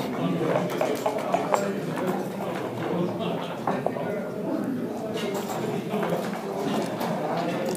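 Game pieces click and clack as they are moved on a wooden board.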